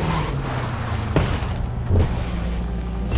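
A car scrapes and thumps against a roadside verge.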